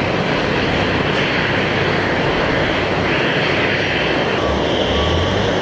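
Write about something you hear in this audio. A cargo loader's motor hums loudly and steadily.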